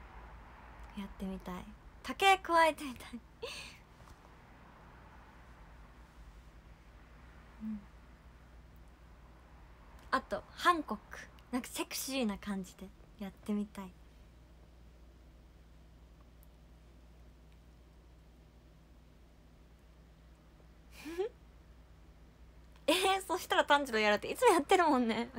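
A young woman talks brightly close to a microphone, with pauses.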